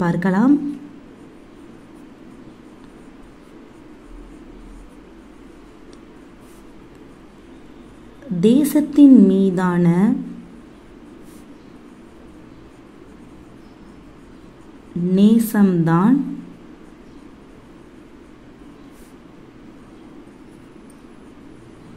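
A ballpoint pen scratches softly across paper.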